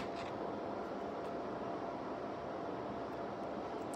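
Scissors snip.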